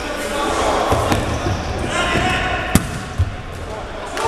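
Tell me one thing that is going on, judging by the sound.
A ball thuds off a player's foot in a large echoing hall.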